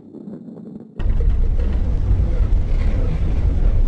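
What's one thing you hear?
Stacked blocks crash and tumble as the ball smashes through them.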